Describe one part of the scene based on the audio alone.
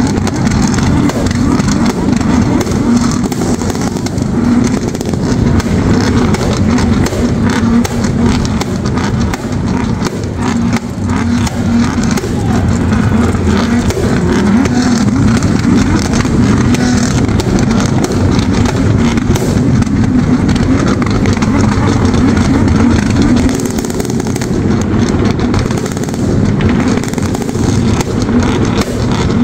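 Loud racing engines roar and rev continuously.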